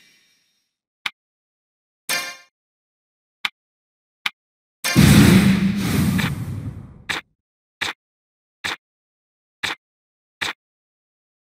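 Short menu blips sound one after another.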